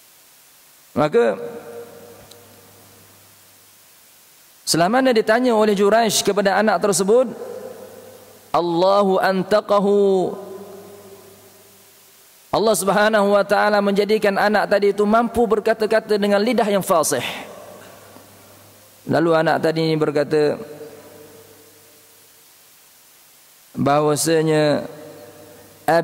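A man speaks through a microphone in bursts, with pauses between phrases, in an echoing hall.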